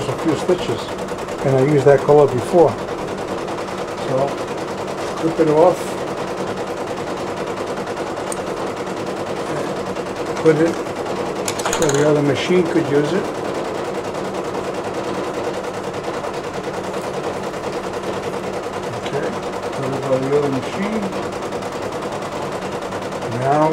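An embroidery machine hums and stitches steadily.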